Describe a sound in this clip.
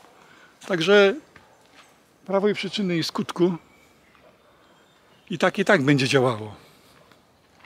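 An elderly man speaks close up with animation, outdoors.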